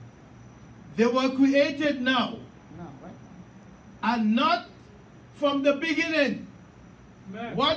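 A man preaches with animation into a microphone, his voice filling a large echoing hall.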